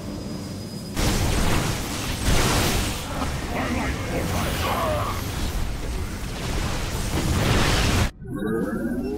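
Laser beams fire and crackle in a game battle.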